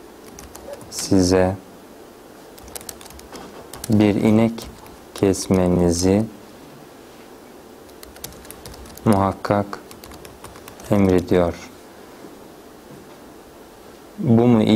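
A man speaks slowly and calmly into a close microphone, in short phrases with pauses.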